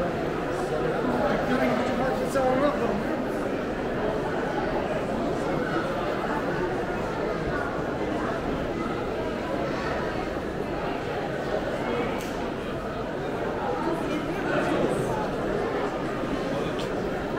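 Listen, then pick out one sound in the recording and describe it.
A crowd of people chatter steadily in a large echoing hall.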